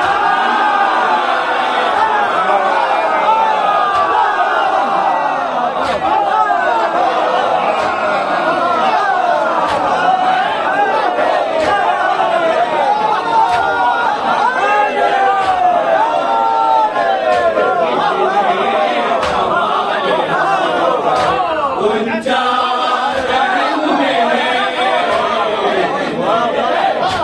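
A large crowd of men chants loudly together.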